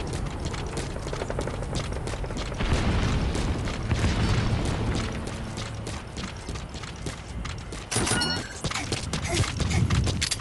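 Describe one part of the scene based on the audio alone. Footsteps patter quickly on a hard surface.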